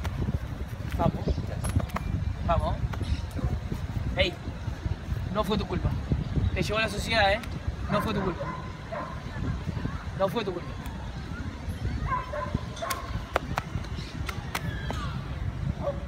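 Two young men talk close by, outdoors in light wind.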